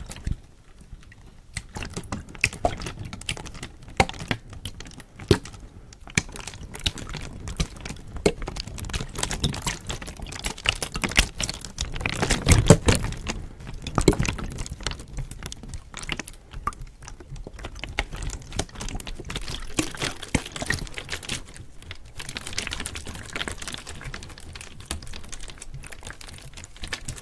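A plastic bottle crinkles and crackles close to a microphone.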